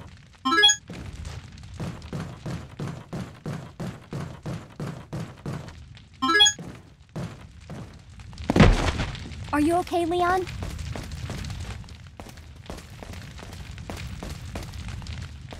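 Footsteps thud quickly and evenly on a wooden floor.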